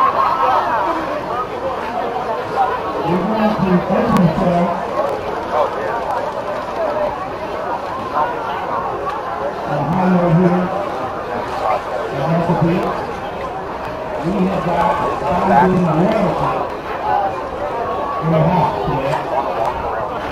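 A crowd chatters all around outdoors.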